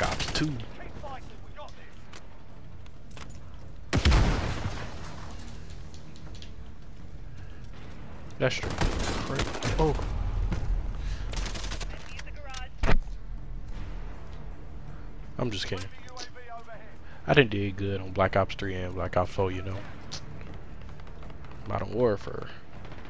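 Gunshots crack in short, loud bursts.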